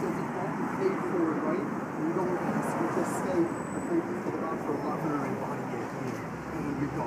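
A woman talks close by.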